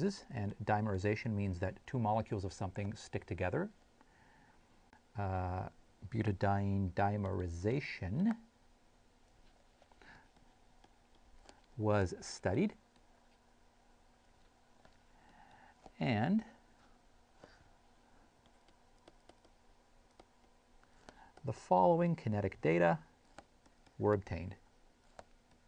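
A man speaks calmly into a close microphone, pausing often.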